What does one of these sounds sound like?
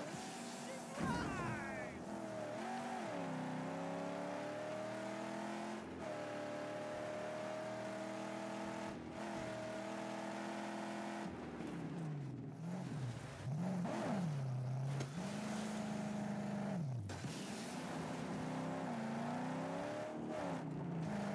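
A car engine roars and revs up and down.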